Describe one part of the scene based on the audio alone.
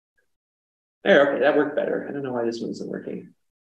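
A man speaks calmly into a microphone, close by.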